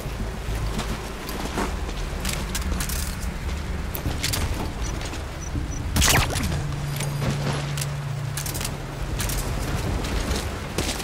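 Rain falls steadily outdoors.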